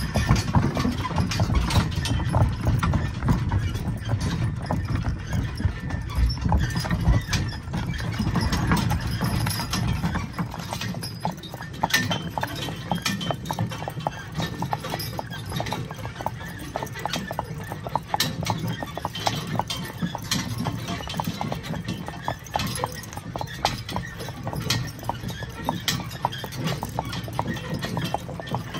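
Horse hooves clop at a steady walking pace.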